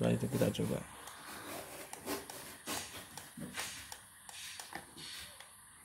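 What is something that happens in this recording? Game pedals click and thud as a hand presses them.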